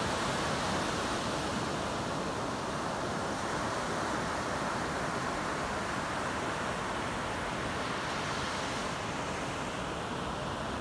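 Ocean waves roll in and wash steadily onto the shore.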